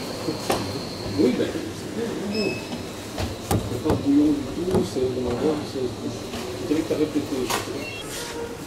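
Plastic parts knock and click as they are handled.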